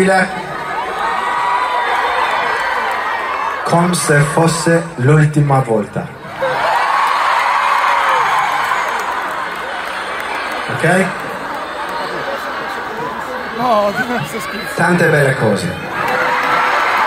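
A huge crowd sings along and screams.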